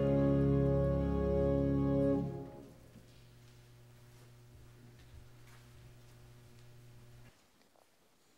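An organ holds a final chord that drops and fades away.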